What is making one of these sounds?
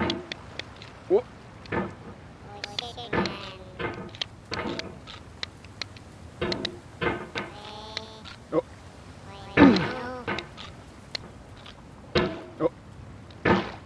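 A metal hammer clanks and scrapes against rock.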